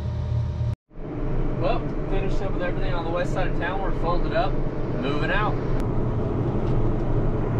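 A young man talks calmly inside a tractor cab.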